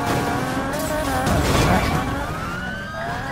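A car crashes with a heavy metal smash.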